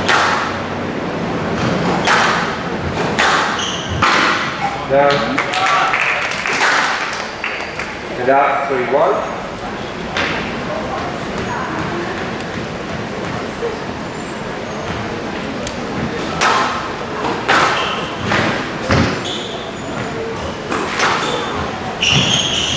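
A squash ball is struck with rackets and smacks off the court walls.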